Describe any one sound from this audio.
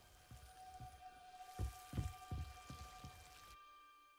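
Footsteps thud across a floor.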